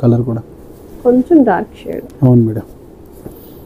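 A man speaks briefly and animatedly close by.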